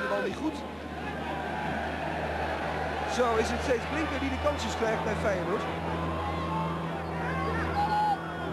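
A crowd murmurs across a large open stadium.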